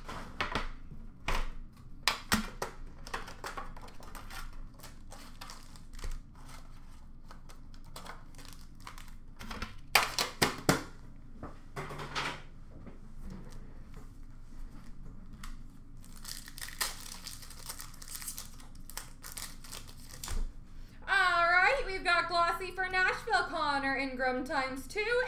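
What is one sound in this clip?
Card packs rustle and clatter as hands sort through them.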